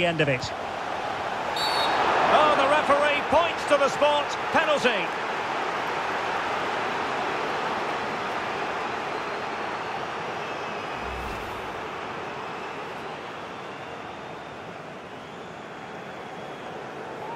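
A stadium crowd roars steadily, swelling and then slowly fading.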